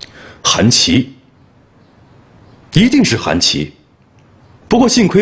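A man speaks calmly, close by, in short phrases.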